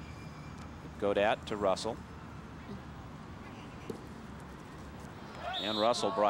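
Young players shout loudly across an open field.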